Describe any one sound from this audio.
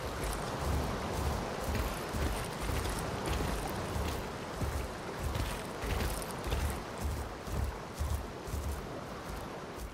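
Heavy footsteps thud in a steady rhythm on soft ground.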